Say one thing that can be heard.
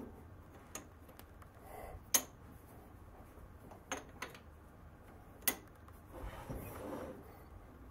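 Metal parts clunk and click as a heavy fitting is moved and clamped.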